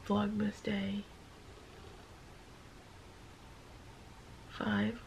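A young woman groans and whines sleepily, close by.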